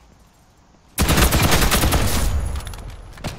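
Rapid gunfire rattles loudly in a video game.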